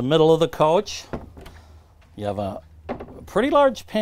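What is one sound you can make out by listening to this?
A cabinet door latch clicks open.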